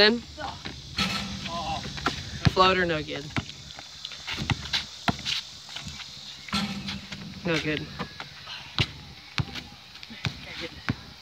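A basketball bounces on hard pavement outdoors.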